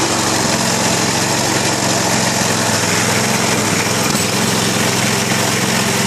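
A motor runs nearby with a loud, steady droning hum.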